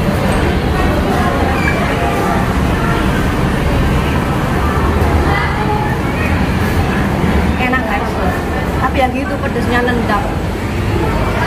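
Men and women chatter in the background.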